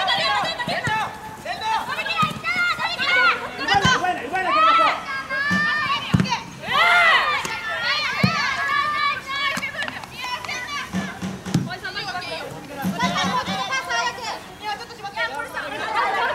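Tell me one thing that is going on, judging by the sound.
Young women shout and call to one another outdoors.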